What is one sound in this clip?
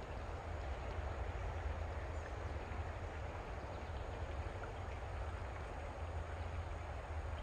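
A river rushes and burbles over rocks close by.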